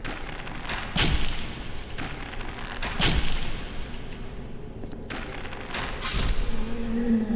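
Heavy weapon blows thud and clang in sharp bursts.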